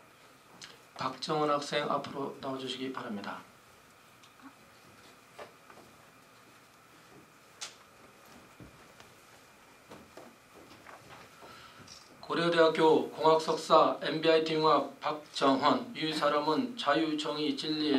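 An older man reads out through a microphone in an echoing room.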